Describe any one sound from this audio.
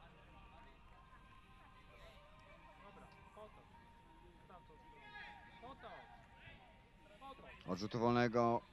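Men shout short calls to each other outdoors.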